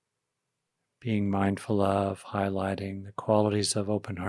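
An older man speaks calmly and closely into a microphone.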